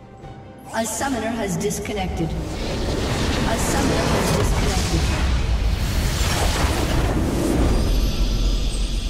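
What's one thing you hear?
Game spell blasts and clashes boom and crackle loudly.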